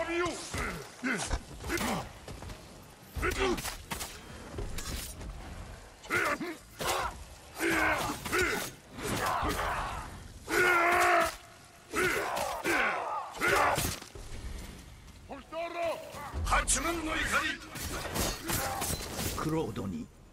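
Blades clash and strike with sharp hits.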